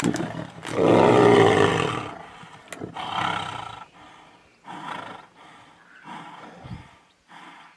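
Tigers snarl and growl loudly up close.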